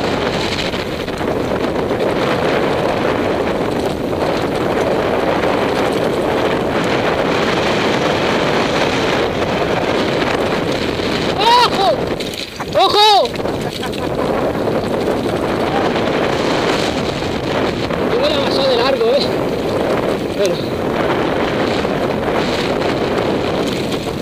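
Bicycle tyres roll and crunch over a dirt trail.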